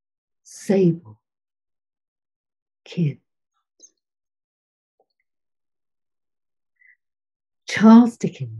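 A woman reads aloud slowly over an online call, with long pauses.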